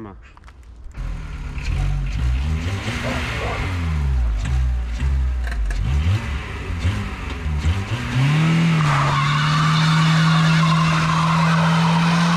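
Car tyres spin and screech on asphalt.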